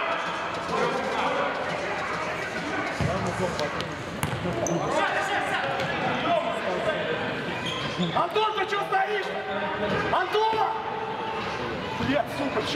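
Young men shout to each other across an echoing indoor hall.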